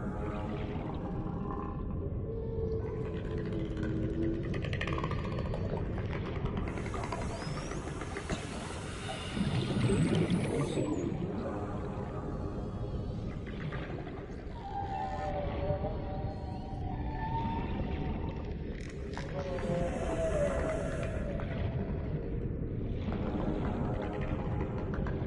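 Water rushes and bubbles in a muffled, underwater way.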